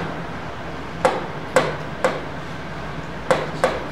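A pen taps and scratches on a writing board.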